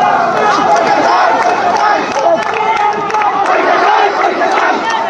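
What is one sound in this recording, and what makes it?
A large crowd of young men shouts and chants loudly outdoors, close by.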